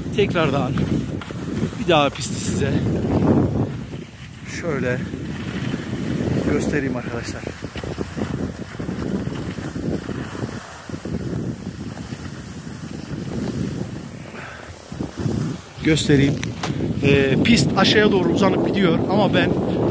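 Skis scrape and hiss over packed snow close by.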